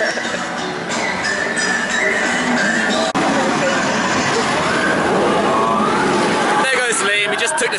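A roller coaster roars past on its track.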